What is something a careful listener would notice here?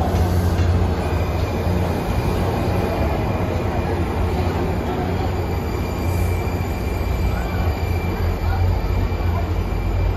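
A train's wheels squeal faintly on the rails.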